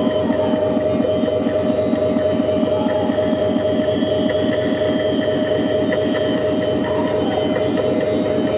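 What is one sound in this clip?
A steady electronic drone hums beneath the beat.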